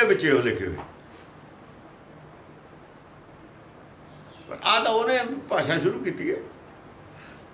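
An elderly man speaks calmly and close by, in short bursts.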